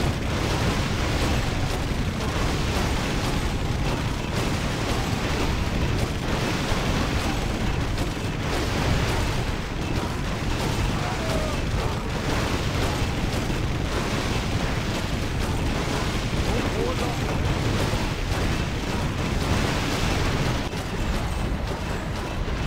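Weapons clash and thud in a busy battle.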